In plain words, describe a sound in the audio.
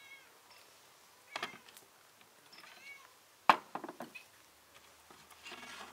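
Dishes clink on a tray.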